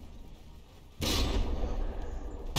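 A large naval cannon fires a booming shot.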